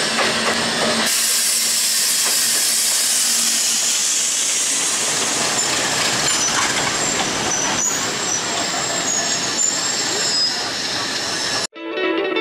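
A diesel locomotive rumbles past below.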